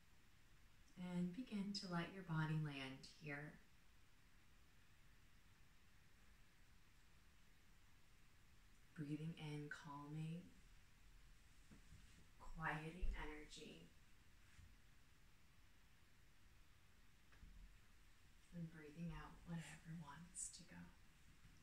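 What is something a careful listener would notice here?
A woman speaks calmly and gently, close by, with pauses between phrases.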